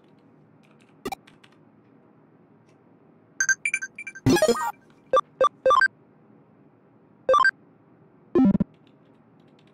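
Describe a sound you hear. Short electronic menu blips sound several times.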